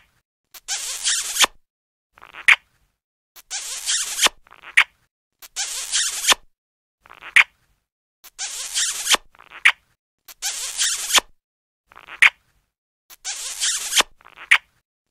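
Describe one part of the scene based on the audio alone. Loud wet kissing smacks repeat in a steady rhythm.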